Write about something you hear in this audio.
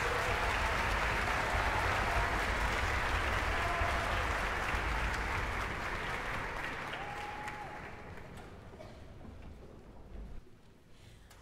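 A large orchestra plays in a big echoing hall, slowly fading away.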